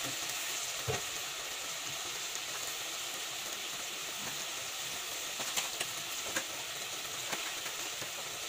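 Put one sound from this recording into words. A wooden spatula scrapes and knocks against a clay pot.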